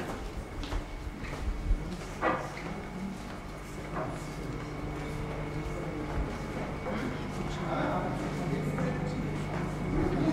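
Footsteps tap on a hard floor in an echoing corridor.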